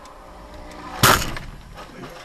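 A car slams into a motorcyclist with a sharp loud thud.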